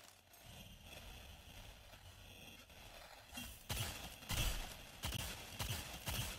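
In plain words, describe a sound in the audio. Rapid gunshots ring out in bursts.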